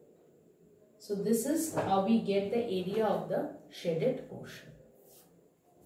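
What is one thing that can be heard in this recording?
A woman speaks calmly and clearly, explaining nearby.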